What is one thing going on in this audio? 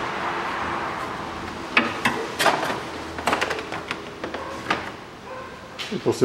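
Plastic engine parts rattle and click as gloved hands pull them loose.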